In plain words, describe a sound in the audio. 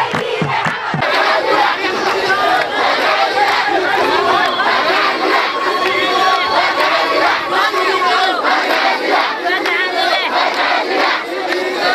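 A crowd of young people shouts and cheers while marching.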